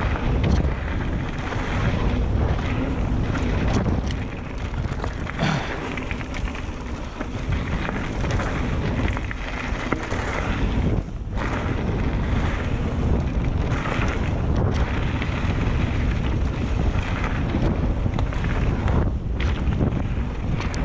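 Wind roars past at speed.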